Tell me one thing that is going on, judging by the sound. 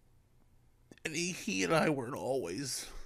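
A man speaks close into a microphone.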